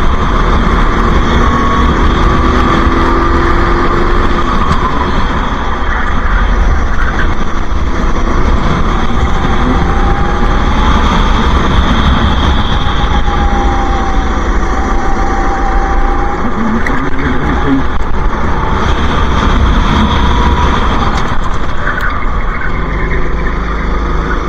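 A kart engine whines loudly and changes pitch as it speeds up and slows down.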